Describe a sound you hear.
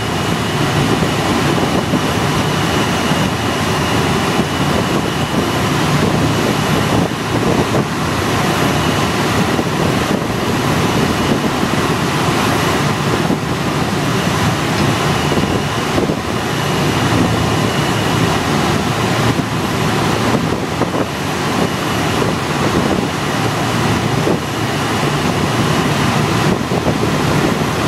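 A small plane's engine drones loudly and steadily up close.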